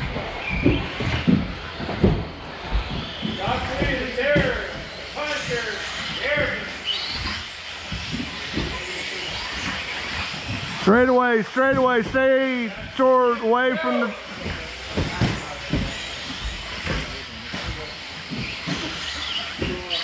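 Plastic toy cars bump and clatter over the track.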